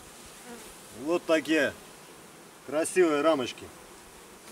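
A man speaks briefly and calmly from close by.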